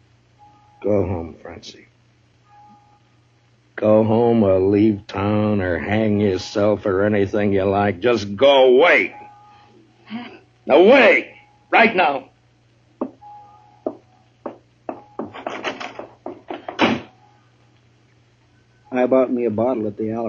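An old radio plays a voice through its loudspeaker.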